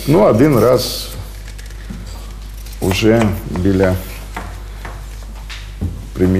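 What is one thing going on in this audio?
An elderly man speaks calmly and close by, in short phrases.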